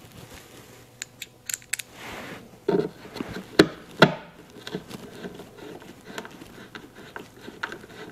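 Small metal screws click against a hand tool.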